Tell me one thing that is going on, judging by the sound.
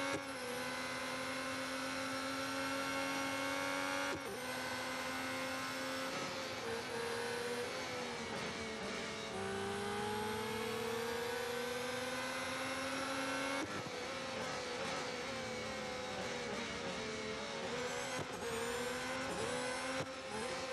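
A racing car engine whines loudly, rising and falling in pitch.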